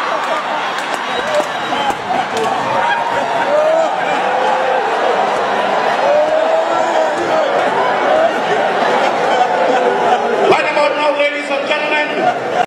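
A middle-aged man sings loudly through a microphone.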